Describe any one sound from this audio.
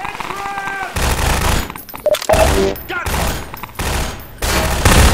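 A rifle fires rapid bursts of shots that ring in an echoing space.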